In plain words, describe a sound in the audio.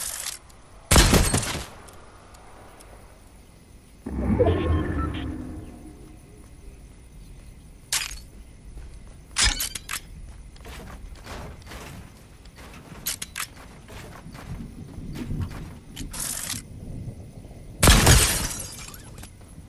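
A gun fires loud single shots.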